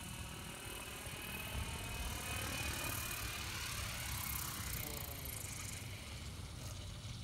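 An electric radio-controlled helicopter whirs at low rotor speed as it descends and lands.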